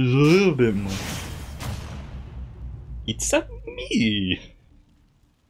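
Video game sound effects whoosh and chime.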